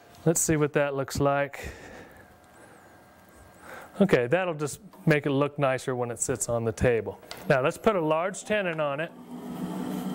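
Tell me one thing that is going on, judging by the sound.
A man talks calmly and clearly into a clip-on microphone.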